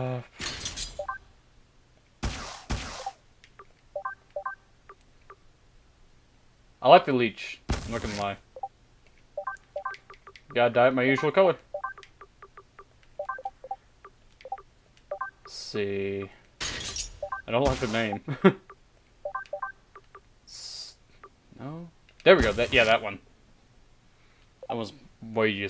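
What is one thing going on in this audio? Short soft electronic blips sound as menu selections change.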